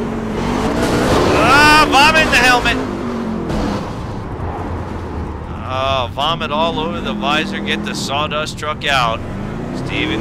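Tyres screech as a race car skids and spins.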